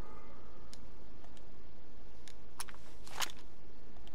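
A game menu clicks softly.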